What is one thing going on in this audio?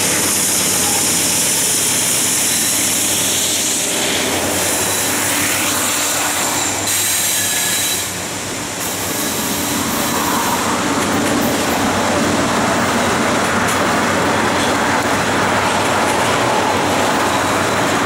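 Freight cars clatter and squeal over the rails.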